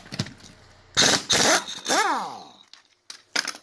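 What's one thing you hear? An impact wrench hammers on wheel lug nuts.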